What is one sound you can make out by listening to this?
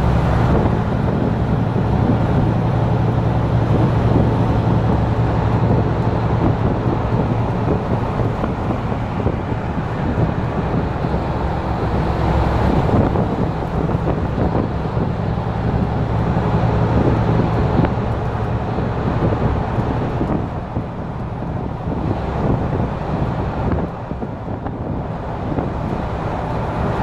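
A vehicle's engine rumbles steadily while driving at speed.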